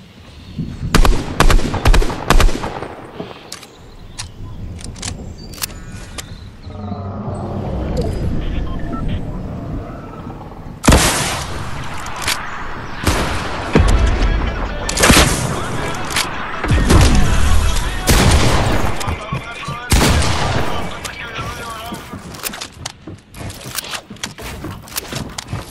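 Wooden planks snap into place with quick knocks.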